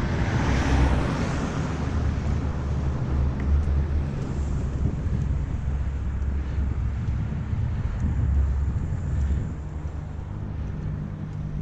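Bicycle tyres roll steadily on asphalt.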